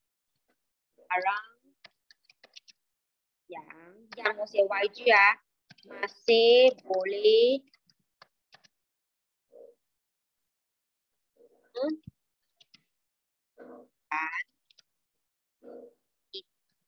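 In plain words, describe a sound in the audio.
A young woman speaks slowly and haltingly into a close microphone.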